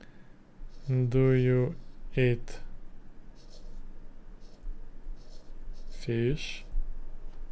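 A young man speaks calmly and briefly into a close microphone.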